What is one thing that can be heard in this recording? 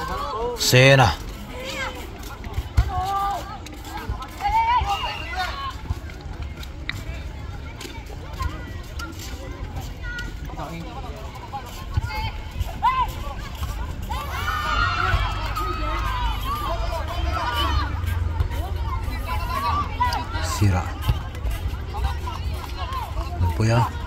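Young boys shout and call to each other outdoors.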